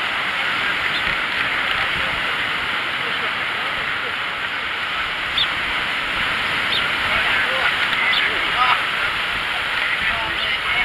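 Waves wash and break steadily over rocks close by.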